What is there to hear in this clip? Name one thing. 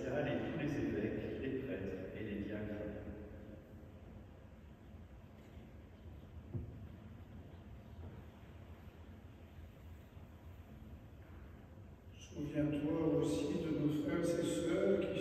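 A man intones a prayer aloud in an echoing room, heard through a microphone.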